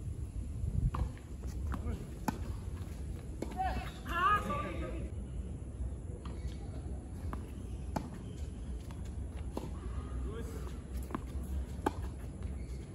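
Tennis rackets strike a ball back and forth with sharp pops.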